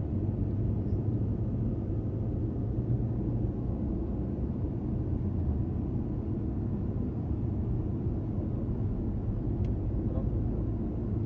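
A car's engine hums steadily from inside as it drives.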